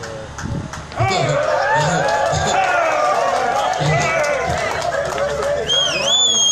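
A crowd of men and women sings and cheers loudly outdoors.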